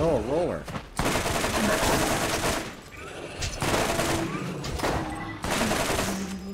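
Shotgun blasts boom in rapid bursts.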